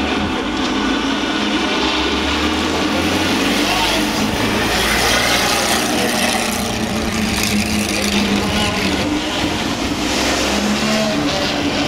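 A race car engine roars loudly as the car drives past.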